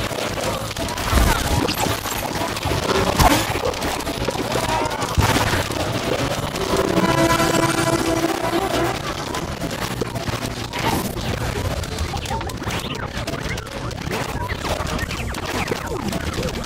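Fiery explosions burst with loud thumps.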